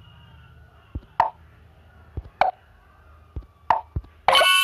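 Short popping clicks sound as game pieces are matched.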